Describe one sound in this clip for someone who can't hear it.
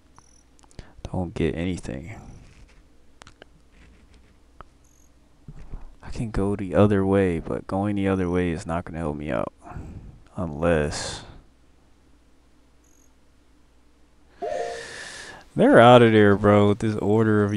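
A young man talks with animation into a headset microphone, close up.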